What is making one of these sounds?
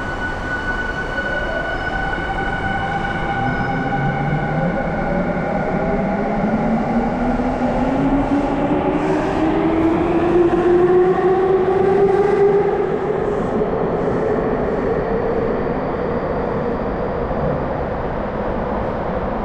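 An electric train hums and whines as it pulls away, its pitch steadily rising, heard in a large echoing underground hall.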